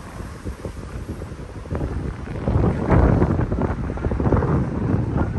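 A car drives past close by on the street.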